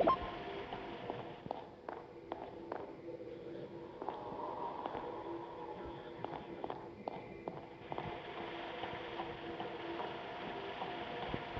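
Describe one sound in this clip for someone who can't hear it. A low electronic hum drones throughout.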